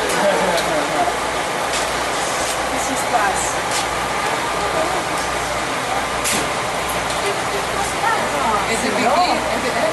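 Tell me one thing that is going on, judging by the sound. A crowd of people talk outdoors.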